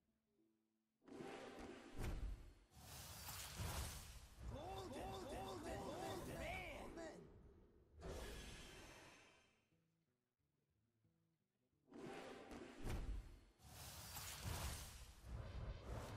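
Game sound effects whoosh and burst as card packs are opened.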